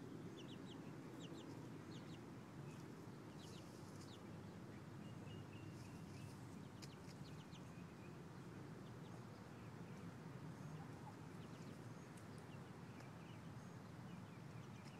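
A chick peeps in quick, high chirps.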